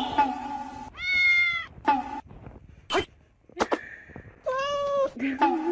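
A small kitten mews softly.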